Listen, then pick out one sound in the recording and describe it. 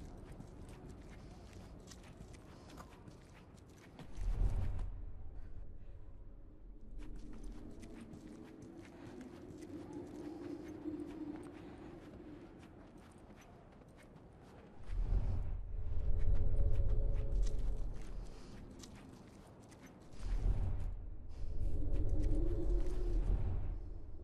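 Soft footsteps creep across a hard floor.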